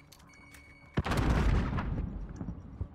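A rifle clatters and rattles as it is handled.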